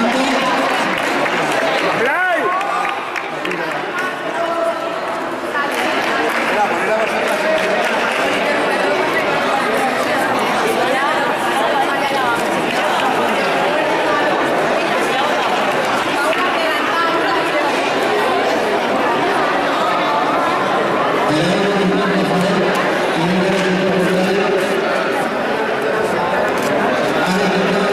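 A group of children chatter and call out nearby.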